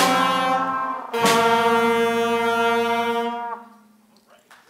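A jazz band plays a final chord that rings out in a large hall.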